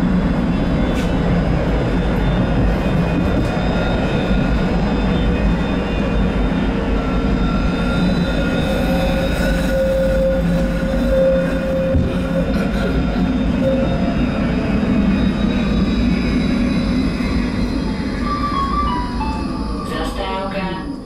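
A tram's electric motor whines, rising in pitch and then falling as the tram slows.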